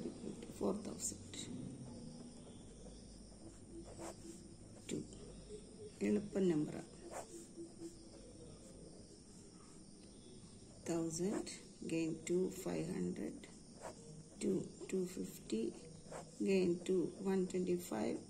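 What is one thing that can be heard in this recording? A pen scratches on paper as it writes.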